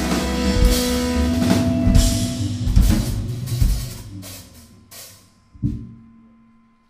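A live band plays loudly, then stops with a final crash.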